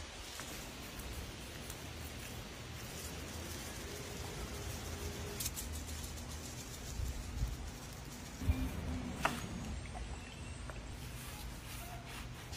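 Gloved hands pat and slap raw meat on a cutting board.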